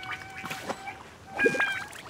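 A fishing float bobs and splashes in water.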